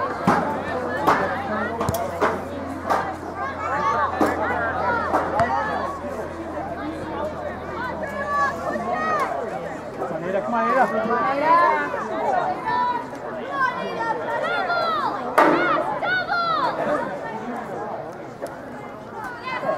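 Spectators cheer and shout from the sidelines outdoors.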